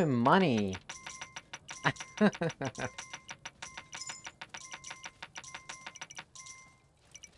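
Coins clink and jingle in quick succession.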